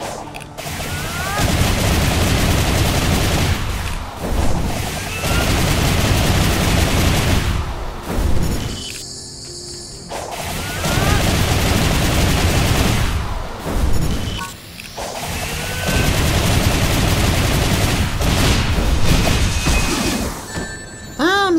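Rapid whooshing slashes and heavy impacts crash in loud bursts.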